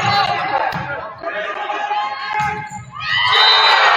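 A volleyball is hit with sharp smacks.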